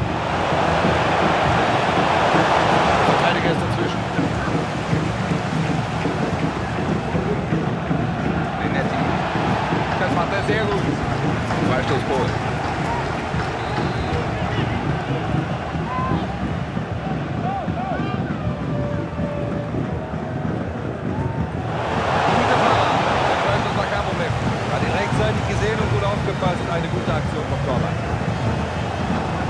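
A large stadium crowd roars steadily, swelling loudly at times.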